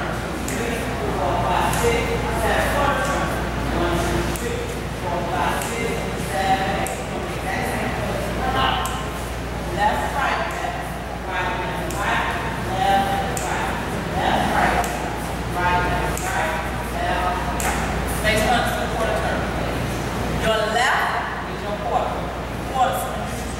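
Shoes scuff and step on a hard floor.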